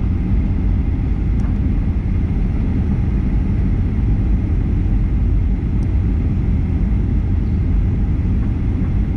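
Jet engines roar steadily inside an airplane cabin.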